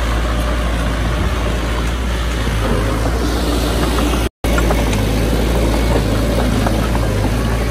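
A bulldozer engine rumbles and clatters steadily nearby.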